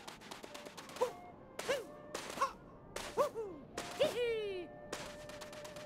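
A cartoon character lets out short, bouncy jump cries several times.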